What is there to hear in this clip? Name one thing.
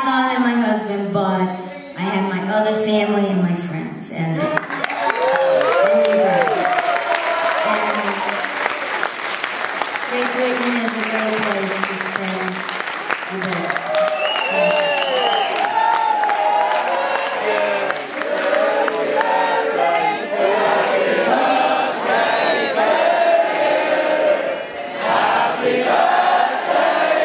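A man speaks into a microphone over loudspeakers in a large hall.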